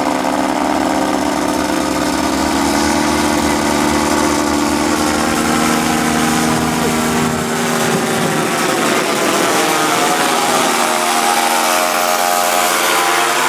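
A small propeller engine drones loudly overhead, its pitch shifting as it flies past.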